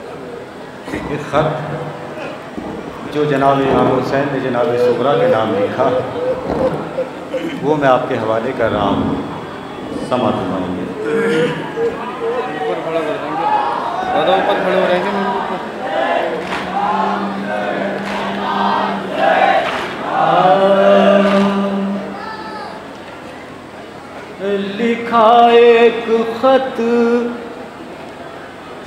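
A man sings a mournful chant into a microphone, heard through loudspeakers.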